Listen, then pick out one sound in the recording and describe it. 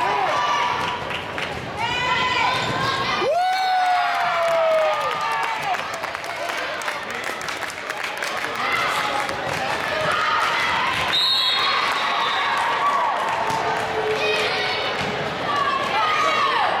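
Spectators chatter and call out in an echoing gym.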